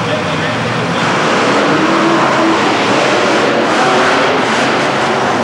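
A large crowd cheers throughout the arena.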